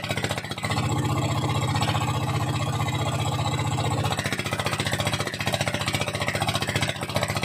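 A winch motor hums and rattles steadily, close by.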